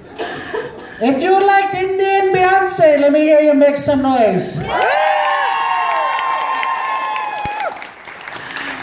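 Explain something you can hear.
Young performers sing loudly in an echoing hall.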